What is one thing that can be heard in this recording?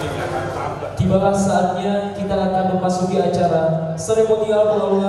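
A young man speaks clearly into a microphone over a loudspeaker.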